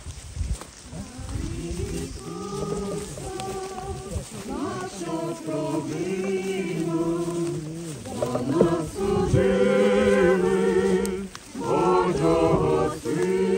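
A crowd of men and women sings together outdoors, growing louder.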